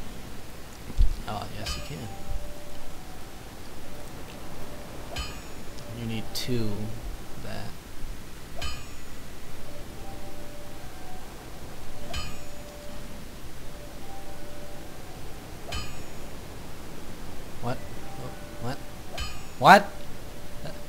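Soft game menu clicks tick now and then.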